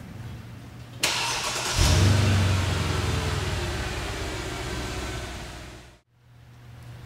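An engine starts up and idles with a low rumble.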